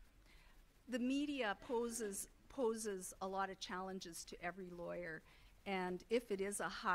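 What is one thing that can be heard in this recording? A woman speaks calmly into a microphone, heard through loudspeakers in a large room.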